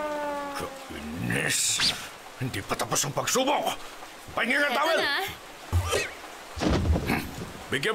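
A man speaks gruffly and angrily.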